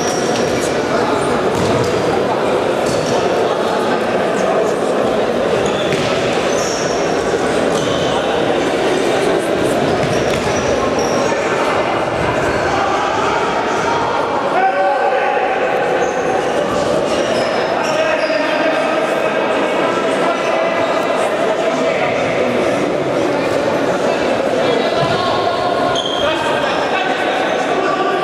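Players' shoes squeak on a hard court in a large echoing hall.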